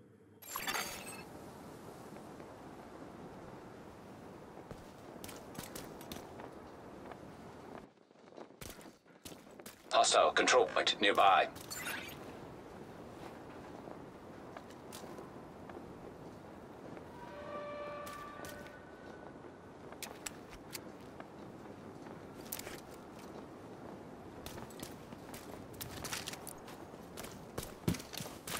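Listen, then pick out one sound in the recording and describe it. Footsteps tread on wet, debris-strewn ground.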